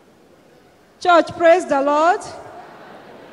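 An elderly man speaks through a microphone in a loud, raised voice.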